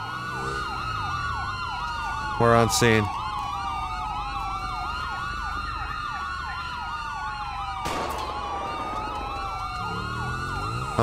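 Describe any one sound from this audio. A police siren wails in rising and falling sweeps.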